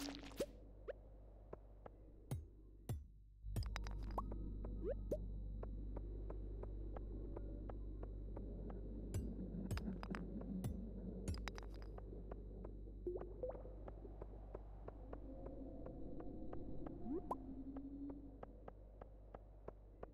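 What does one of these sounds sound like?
Game footsteps tap in a quick, steady rhythm.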